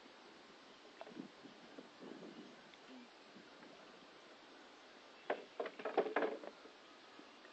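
A fish splashes and thrashes in the water close by.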